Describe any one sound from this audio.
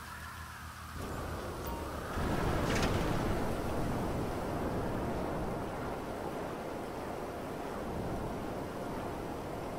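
A jet-powered hover bike roars as it takes off.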